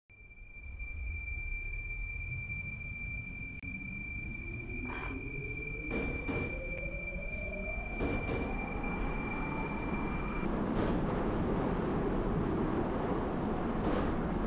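An electric metro train's traction motors whine, rising in pitch as the train accelerates.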